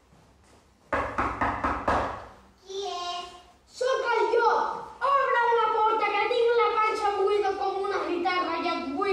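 A child speaks with animation in a high voice.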